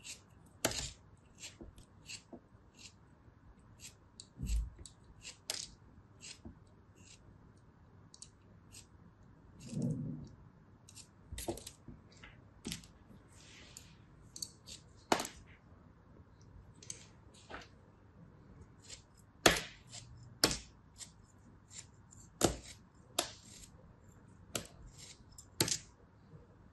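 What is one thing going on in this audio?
A small blade slices through soft kinetic sand with crisp, crunchy scrapes.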